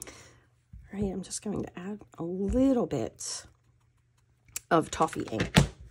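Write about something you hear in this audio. A small foam tool taps on an ink pad.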